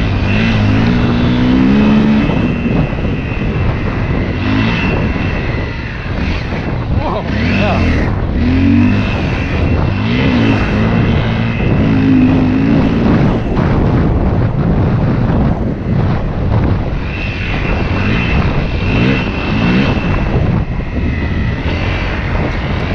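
A dirt bike engine revs up and down as it rides along a trail.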